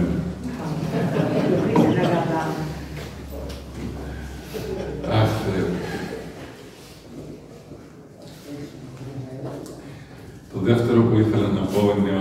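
An elderly man speaks calmly into a microphone over a loudspeaker, in an echoing room.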